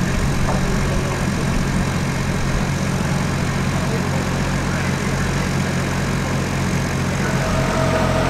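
A heavy rail car rolls slowly along the track with a low rumble.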